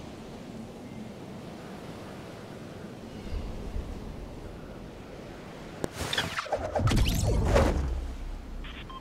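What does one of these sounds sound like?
Wind rushes loudly during a fast fall through the air.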